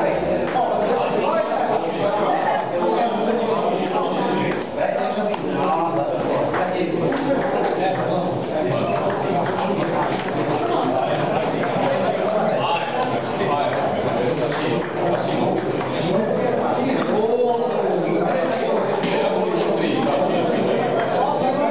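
Table tennis balls click against paddles and the table in quick rallies.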